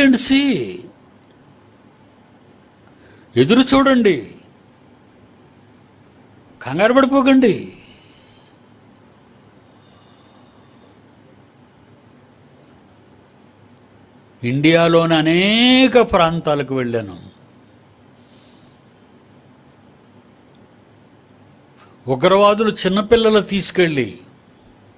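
An elderly man speaks with emphasis into a microphone, in short bursts separated by pauses.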